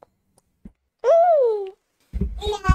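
A baby squeals close to a microphone.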